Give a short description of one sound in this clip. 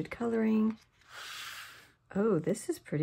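Stiff paper pages rustle as they are turned.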